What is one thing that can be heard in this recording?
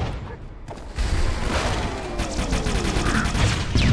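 A plasma grenade explodes with a loud crackling boom.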